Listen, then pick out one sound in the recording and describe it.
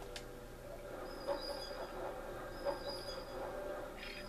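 A mechanical lift whirs and clanks as it rises.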